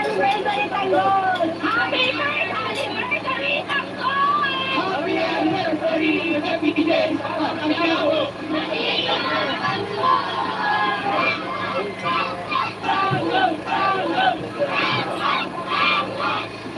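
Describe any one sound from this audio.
A young child talks and babbles nearby.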